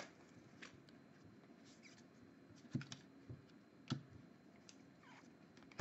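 Trading cards rustle and slide as they are shuffled by hand.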